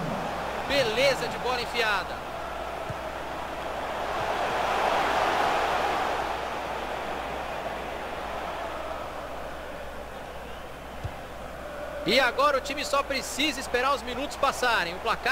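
A large crowd murmurs and roars in a stadium, swelling and then settling.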